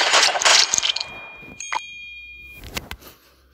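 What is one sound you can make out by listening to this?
A short chime rings out as a game round ends.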